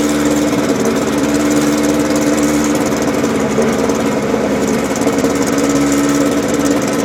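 Tyres hum on the track.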